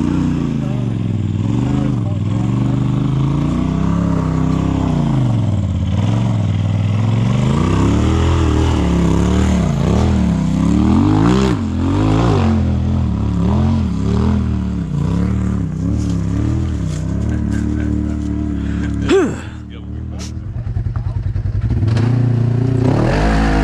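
An off-road vehicle's engine revs hard and rises and falls in pitch.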